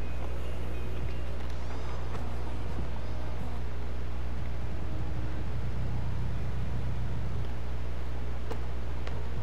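Music with a heavy, steady bass plays throughout.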